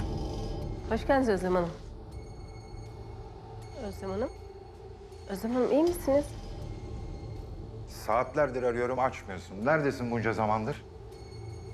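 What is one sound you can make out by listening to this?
A woman speaks tensely nearby.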